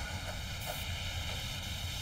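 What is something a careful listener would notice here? A burning fuse sizzles and hisses.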